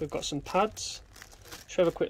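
A plastic bag crinkles in hands.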